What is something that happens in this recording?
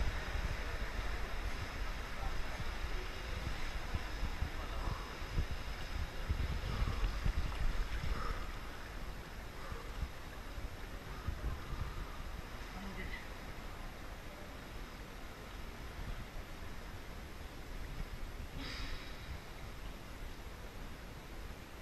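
Voices echo faintly in a large indoor pool hall.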